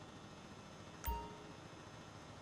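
A short electronic notification chime sounds.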